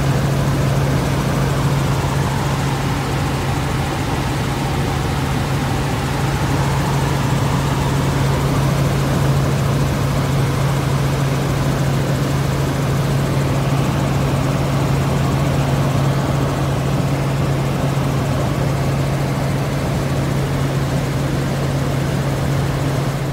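A helicopter's rotor and engine drone loudly and steadily from inside the cabin.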